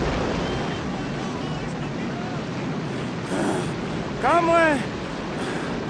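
An elderly man cries out loudly.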